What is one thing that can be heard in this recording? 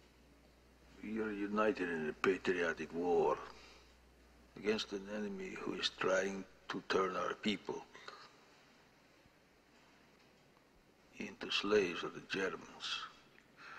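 A middle-aged man speaks slowly and gravely into a microphone, with pauses.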